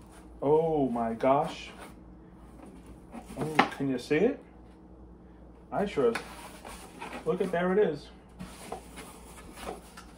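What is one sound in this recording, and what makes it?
Cardboard flaps rustle and scrape as a box is handled.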